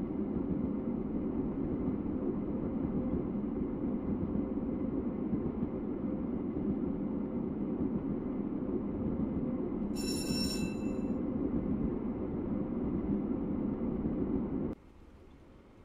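A diesel locomotive engine rumbles steadily from inside its cab.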